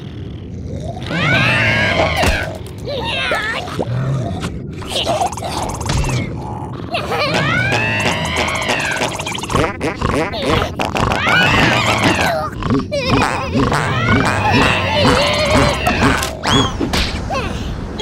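A cartoon creature shrieks and squeals in high, wailing cries.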